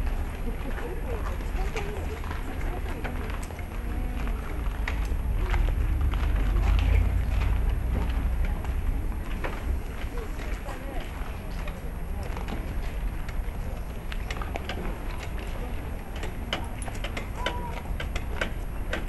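A crowd of people chatters and calls out at a distance outdoors.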